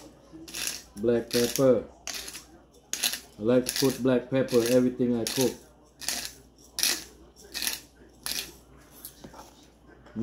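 A pepper grinder crunches in short bursts.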